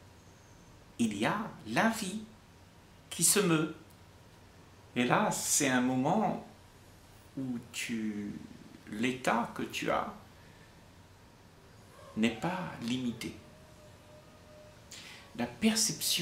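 An elderly man speaks calmly and warmly close by, in short phrases with pauses.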